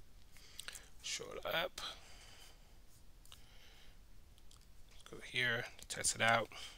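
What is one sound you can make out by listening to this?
A young man speaks calmly into a microphone, heard closely.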